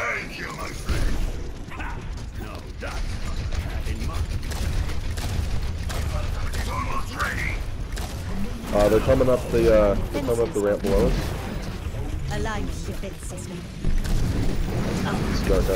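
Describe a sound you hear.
A futuristic gun fires in rapid bursts.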